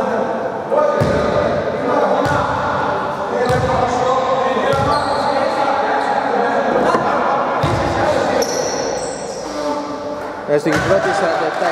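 A basketball bounces on a wooden floor in a large echoing hall.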